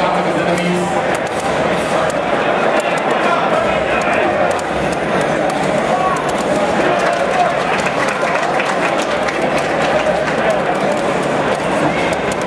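Punches, kicks and blasts from a fighting game play loudly through a speaker.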